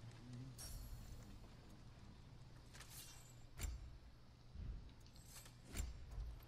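Short soft menu clicks sound several times.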